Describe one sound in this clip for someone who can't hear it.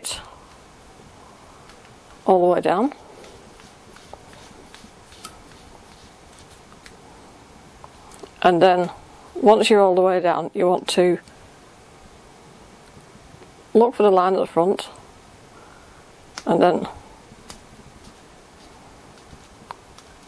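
A plastic dial clicks softly as it is turned.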